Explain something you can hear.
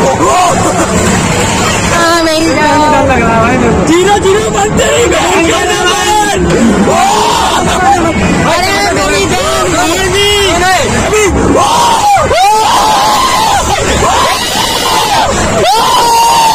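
Young men shout and whoop excitedly close by.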